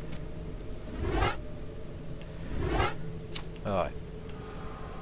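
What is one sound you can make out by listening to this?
Menu sounds whoosh in quick succession.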